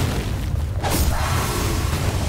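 A blade strikes with a sharp hit.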